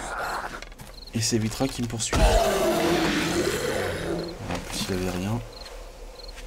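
A zombie growls and snarls loudly.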